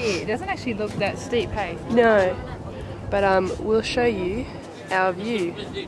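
A second young woman answers close by.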